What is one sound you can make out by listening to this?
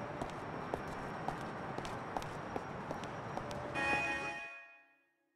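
A man's footsteps tap on pavement.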